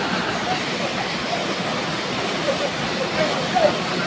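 Water splashes as people wade in a pool.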